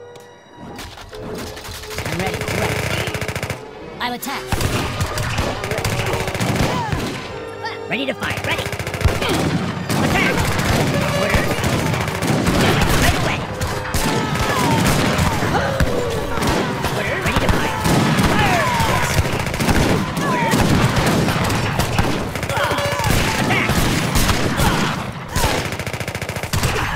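Muskets fire in rapid, crackling bursts.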